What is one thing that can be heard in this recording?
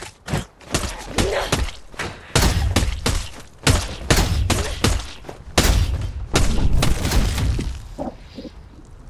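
Heavy blows thud and smack into flesh in quick succession.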